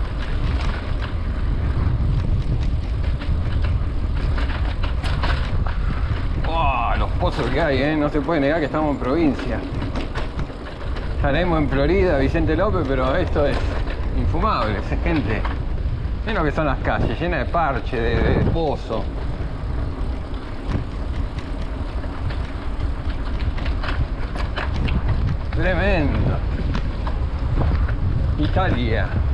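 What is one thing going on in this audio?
Bicycle tyres roll over asphalt.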